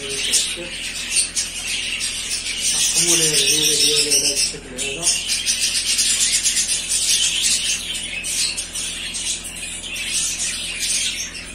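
Many small birds chirp and twitter steadily nearby.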